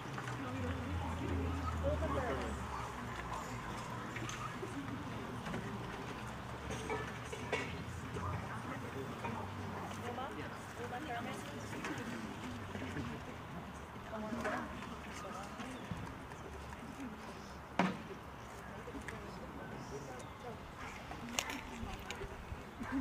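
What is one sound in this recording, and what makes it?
A school band plays brass and woodwind instruments outdoors.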